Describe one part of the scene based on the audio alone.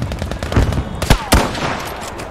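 A rifle shot bangs.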